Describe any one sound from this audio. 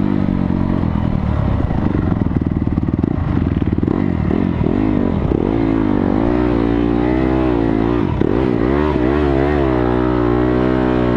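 A dirt bike engine roars up close, revving up and down.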